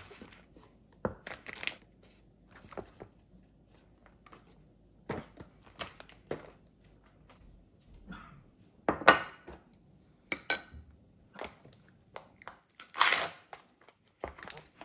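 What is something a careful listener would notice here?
Plastic containers knock and tap onto a hard counter.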